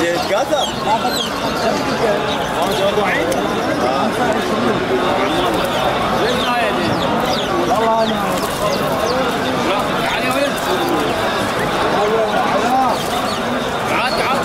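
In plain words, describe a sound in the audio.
Many small birds chirp and twitter busily close by.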